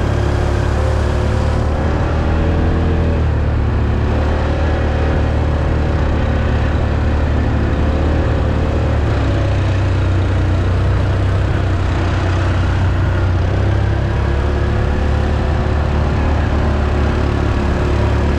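Another quad bike engine drones a little way ahead.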